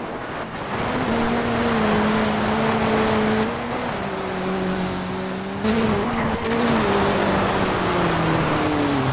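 A rally car engine roars and revs at high speed.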